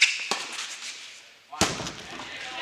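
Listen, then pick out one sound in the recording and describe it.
A tennis ball is struck sharply and echoes through a large hall.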